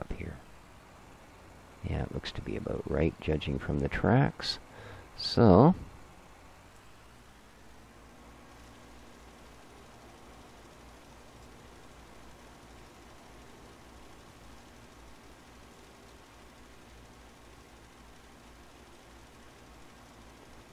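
A tractor engine hums quietly and steadily.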